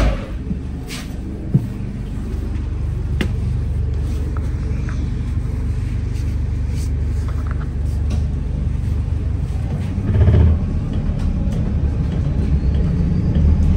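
A bus engine rumbles low and steadily while driving.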